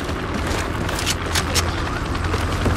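A gun clicks and clacks as it is reloaded.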